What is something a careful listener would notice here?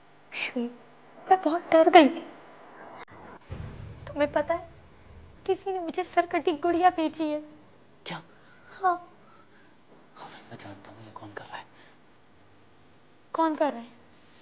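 A young woman answers in a low, upset voice.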